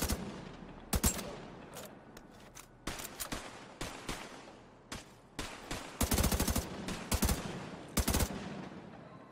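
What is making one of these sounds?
A rifle fires in short bursts of sharp shots that echo outdoors.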